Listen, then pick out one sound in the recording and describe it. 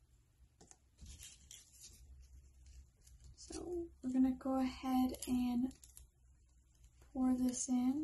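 Paper crinkles softly as it is folded and handled.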